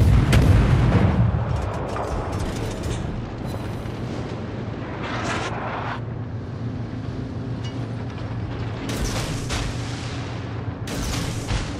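A ship's engine rumbles steadily.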